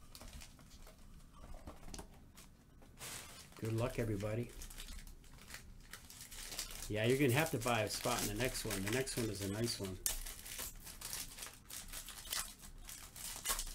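Foil wrappers crinkle and tear as a pack is opened.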